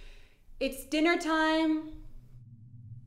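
A woman sings a high, wavering note up close.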